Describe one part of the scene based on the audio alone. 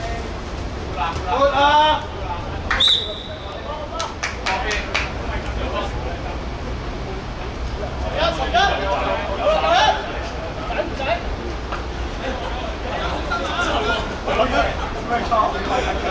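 Young men shout to each other outdoors.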